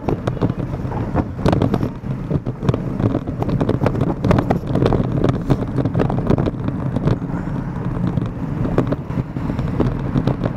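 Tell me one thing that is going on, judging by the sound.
Bicycle wheels rattle over a bumpy road.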